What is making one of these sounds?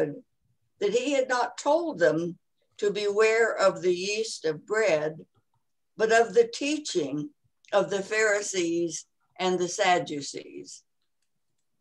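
A woman reads aloud calmly over an online call.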